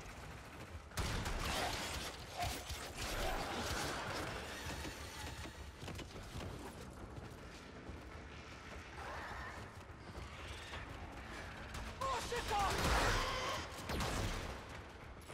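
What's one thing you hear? Energy weapons fire and blasts burst out.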